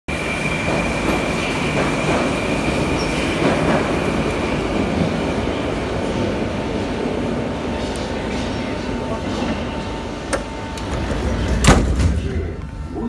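A steady low rumble fills a large echoing hall.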